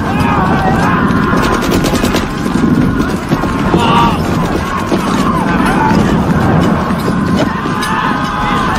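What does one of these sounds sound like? A man screams in agony.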